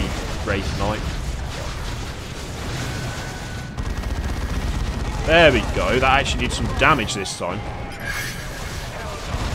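A low rumble of battle runs throughout.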